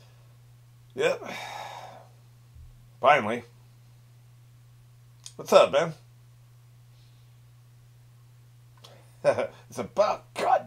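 An elderly man talks calmly into a microphone, close by, in short bursts.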